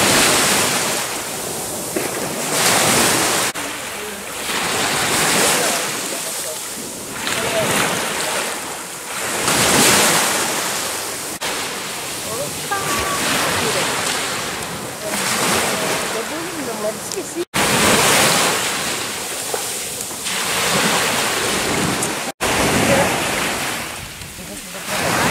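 Waves wash up onto the shore in repeated surges of hissing foam.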